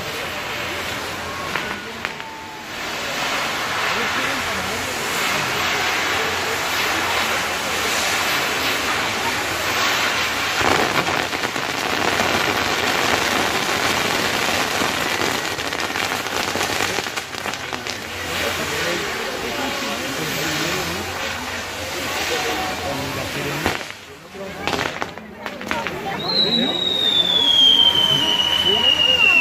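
Fireworks hiss and crackle loudly, with rapid popping.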